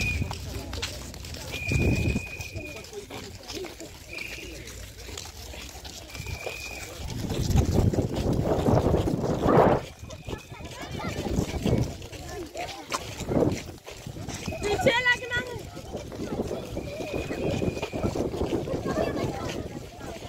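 Many footsteps shuffle on a dirt path outdoors.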